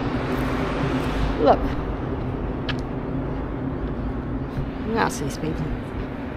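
An older woman talks calmly close by.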